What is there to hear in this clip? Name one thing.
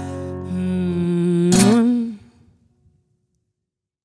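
An acoustic guitar rings out and fades.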